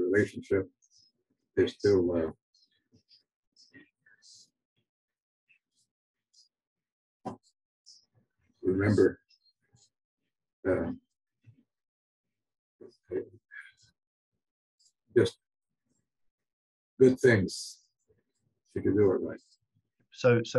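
An elderly man speaks calmly in short bursts over an online call.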